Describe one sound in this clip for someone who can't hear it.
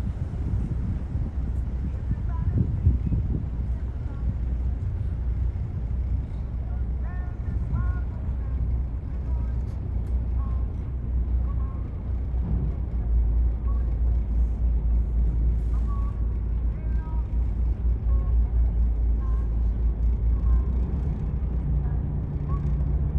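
A ship's engine rumbles low and steadily nearby.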